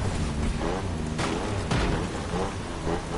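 A car crashes through wooden debris and brush with sharp cracks.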